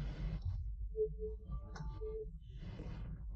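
A computer error chime sounds twice.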